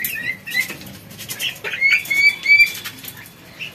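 Ducklings peep in high chirps.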